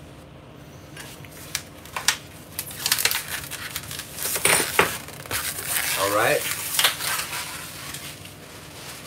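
Something rustles and scrapes close by.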